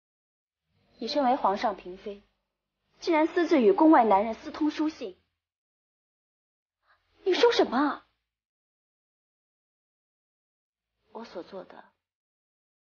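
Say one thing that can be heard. A young woman speaks calmly and coldly, close by.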